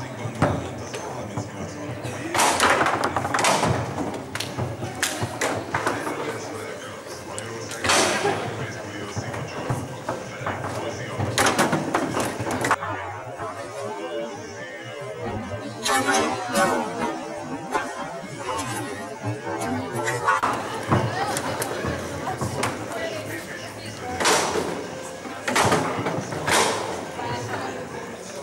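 Foosball rods rattle and clunk as players spin and slide them.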